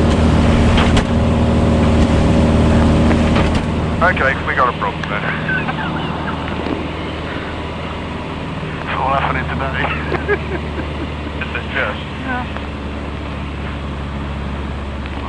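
A small plane's engine drones steadily throughout.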